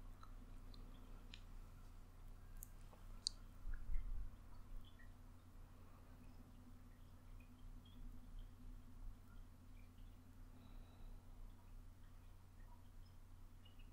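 Fingernails scratch softly on skin.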